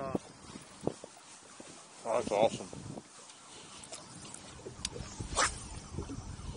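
A fishing reel clicks as the line is wound in.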